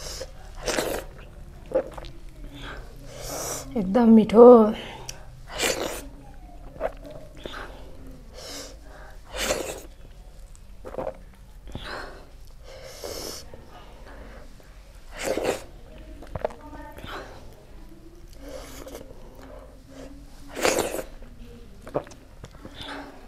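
Fingers squish and mix soft rice and food.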